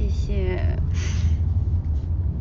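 A young woman giggles close by.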